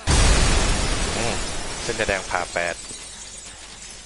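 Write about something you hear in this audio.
Glass shatters with a loud crash.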